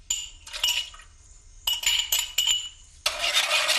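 Metal pot lids clatter and clink.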